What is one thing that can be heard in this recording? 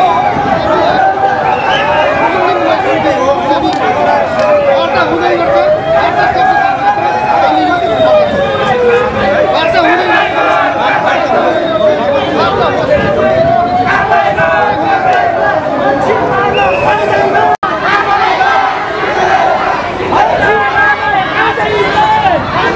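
A crowd of people talks and shouts all around.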